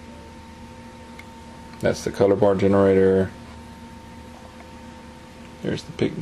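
Plastic game cartridges clatter as a hand handles them.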